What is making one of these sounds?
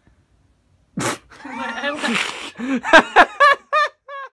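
A young woman laughs loudly and squeals close by.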